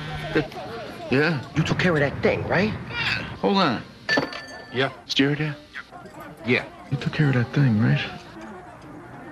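A man talks loudly with animation on a phone.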